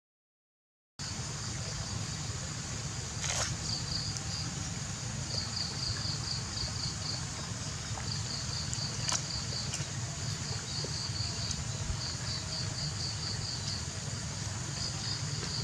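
A knife scrapes and shaves coconut husk.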